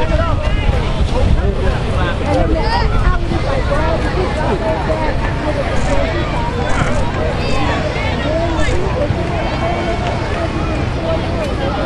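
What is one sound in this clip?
A crowd of people chatters and calls out all around, outdoors.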